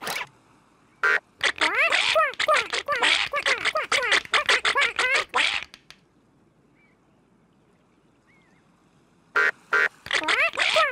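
Cartoon ducks quack rapidly and excitedly.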